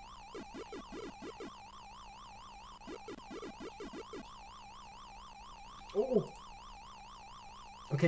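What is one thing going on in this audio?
An arcade game siren warbles steadily up and down.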